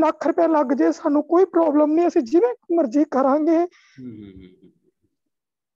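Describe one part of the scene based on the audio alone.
A woman speaks animatedly, close up.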